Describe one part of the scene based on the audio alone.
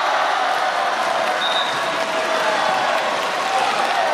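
A volleyball is struck hard on a serve.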